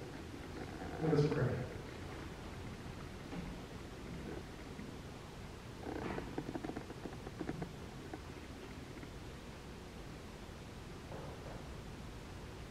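A man speaks slowly through a microphone, with long pauses.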